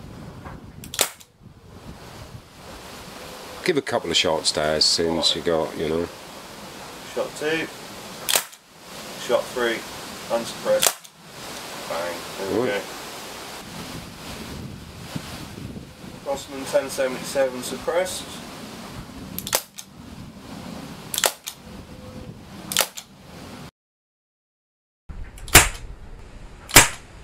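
A gun fires sharp, loud shots outdoors.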